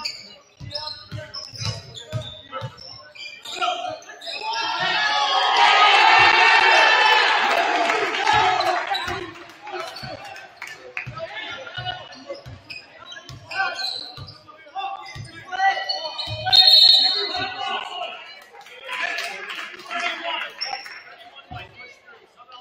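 A basketball bounces on a hardwood floor with a hollow echo.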